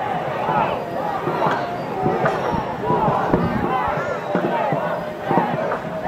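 A crowd shouts and cheers outdoors.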